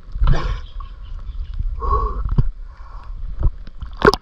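Shallow water sloshes and splashes close by.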